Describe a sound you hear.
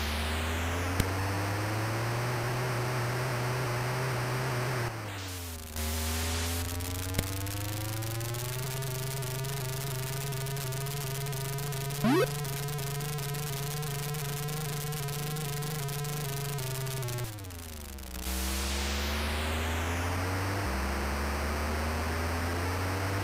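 A buzzy electronic car engine hums, rising and falling in pitch.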